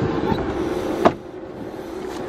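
A car door shuts with a solid thud.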